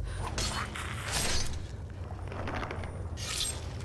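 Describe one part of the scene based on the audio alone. A flame spell roars and crackles.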